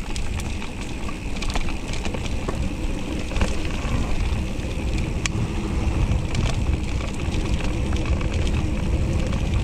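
Bicycle tyres roll and crunch over a bumpy dirt trail.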